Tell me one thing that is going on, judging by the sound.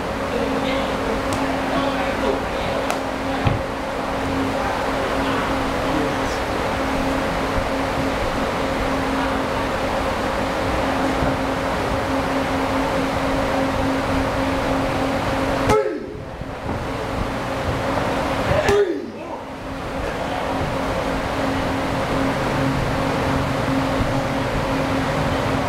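Electric fans whir steadily.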